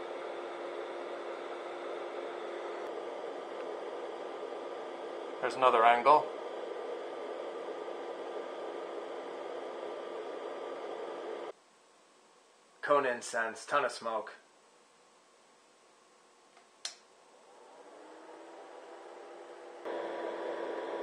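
A small electric fan hums steadily, stops, then spins back up.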